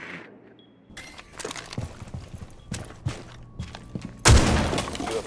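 Footsteps thud quickly on a floor.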